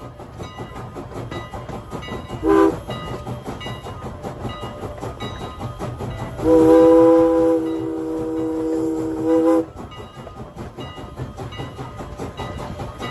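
A steam locomotive chuffs past at close range.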